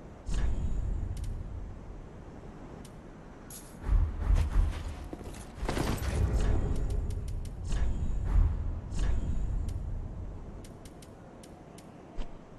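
Short menu clicks tick now and then.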